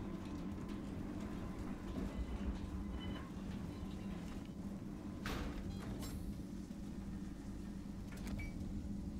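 Small footsteps patter softly on metal.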